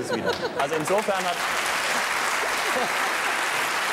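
An elderly woman laughs heartily.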